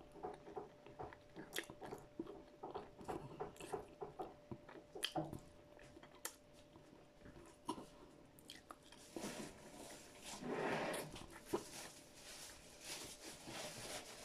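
A woman chews food noisily and smacks her lips close to a microphone.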